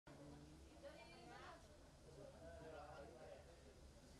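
Men and women talk quietly in the distance.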